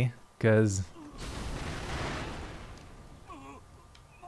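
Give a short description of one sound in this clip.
An explosion bursts with a roaring whoosh.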